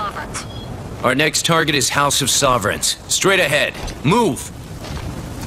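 A man speaks gruffly through a radio.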